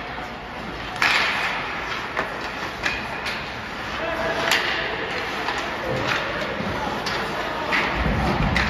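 Hockey sticks clack sharply against a puck.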